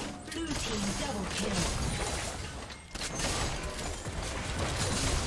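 Game combat effects whoosh and burst in quick succession.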